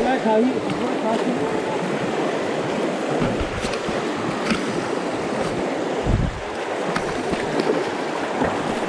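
A fast river rushes and churns loudly over rocks.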